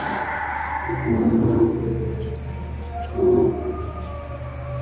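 A dinosaur model growls and roars through a loudspeaker.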